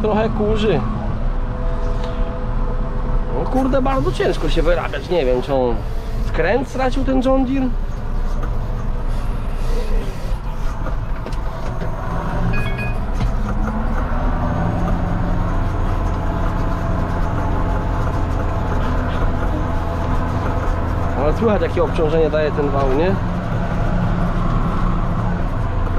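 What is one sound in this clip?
A tractor engine rumbles steadily from inside the cab.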